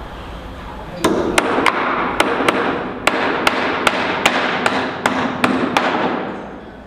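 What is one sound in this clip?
A hammer knocks sharply and repeatedly on wood.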